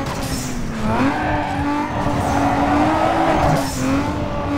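Tyres screech as a sports car slides through a corner.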